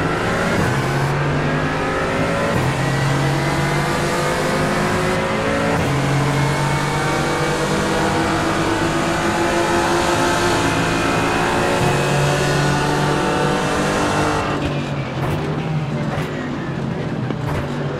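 A racing car engine roars loudly, climbing in pitch and dropping sharply with each gear change.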